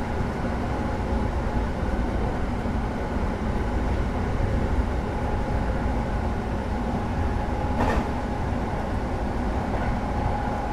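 A train's electric motor hums steadily as the train rolls along the track.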